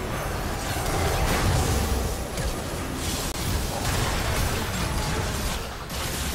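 Game spells blast and crackle during a fight.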